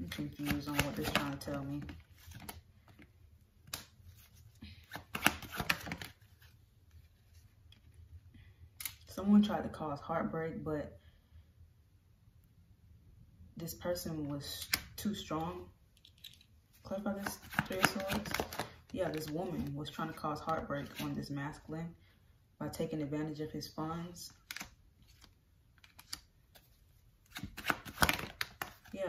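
Stiff cards rustle and slap softly as they are handled and laid down.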